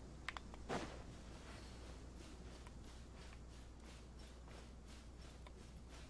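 Footsteps crunch on sand at a running pace.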